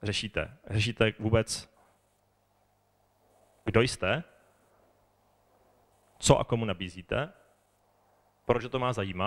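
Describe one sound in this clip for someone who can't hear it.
A man speaks calmly into a microphone over a loudspeaker, pausing between phrases.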